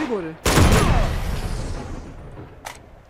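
A gunshot bangs loudly and echoes.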